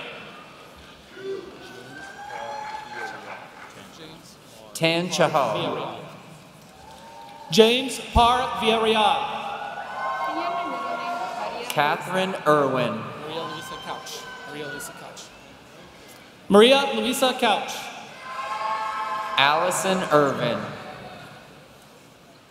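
A man talks briefly with cheer in a large echoing hall.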